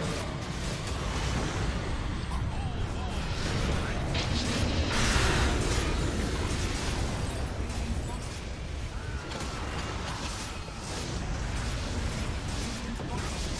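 Spell effects crackle and boom in a busy game battle.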